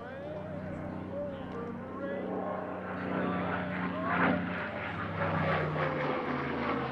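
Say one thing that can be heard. A propeller plane's engine drones overhead, growing louder as it comes closer.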